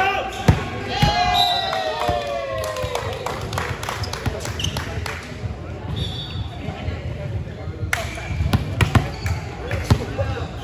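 Sneakers squeak on the wooden court.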